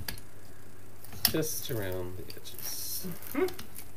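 A metal tool clicks and clunks on a table.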